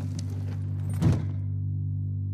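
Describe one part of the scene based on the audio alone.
A heavy door bangs shut with a short echo.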